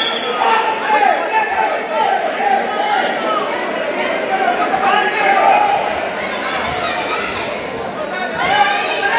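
A crowd of spectators shouts and cheers in an echoing indoor hall.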